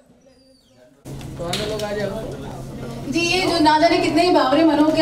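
A crowd of people talk loudly and excitedly close by.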